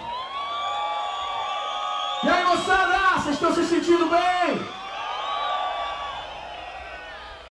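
A rock band plays live through loud speakers in a large echoing space.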